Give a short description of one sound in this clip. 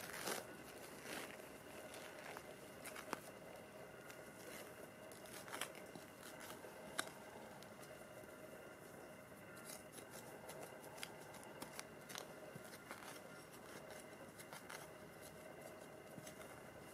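A small hand trowel scrapes and digs into loose soil.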